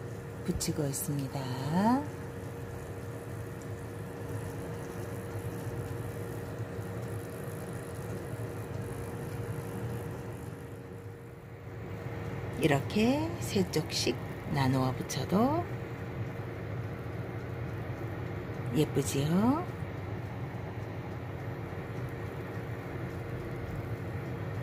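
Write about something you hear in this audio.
Batter sizzles in a hot frying pan.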